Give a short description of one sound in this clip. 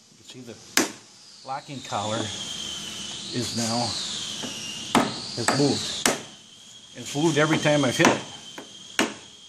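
Metal levers on a lathe clank sharply.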